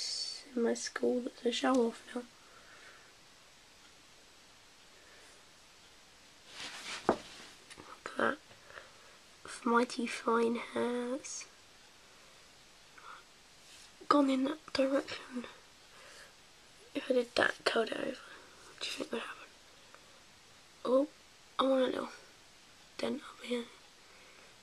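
A young woman talks close by in short bursts, casually.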